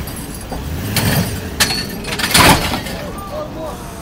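A car drops onto its wheels with a heavy thud.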